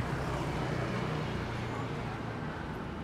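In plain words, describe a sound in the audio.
A motorbike engine hums as it rides away.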